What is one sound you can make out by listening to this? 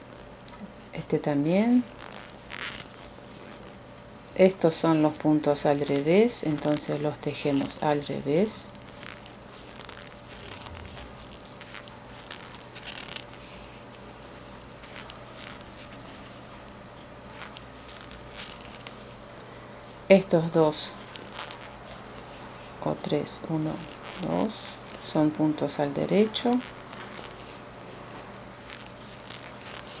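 Knitting needles click softly against each other.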